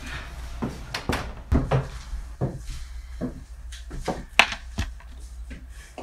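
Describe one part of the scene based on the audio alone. Small objects knock and clatter on a shelf.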